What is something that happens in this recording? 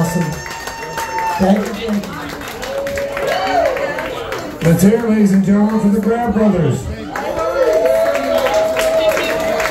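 A guitar plays a melody through an amplifier on stage.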